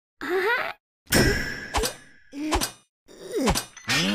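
A cartoon creature grunts and growls angrily through clenched teeth.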